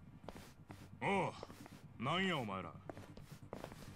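A man calls out a question in a firm voice.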